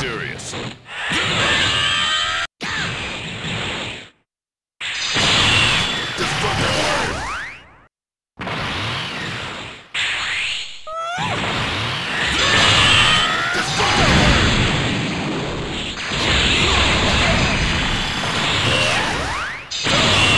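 Energy blasts whoosh and roar loudly.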